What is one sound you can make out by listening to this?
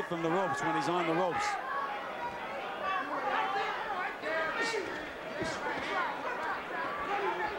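A crowd murmurs and calls out in a large arena.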